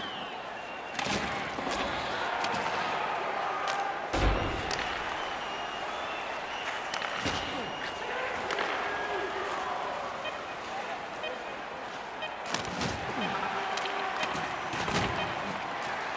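Hockey sticks sharply clack against a puck now and then.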